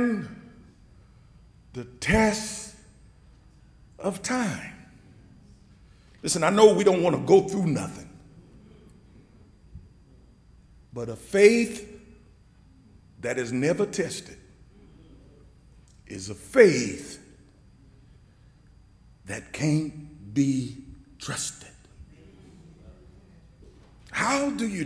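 A man preaches through a microphone in short, emphatic phrases with pauses between them.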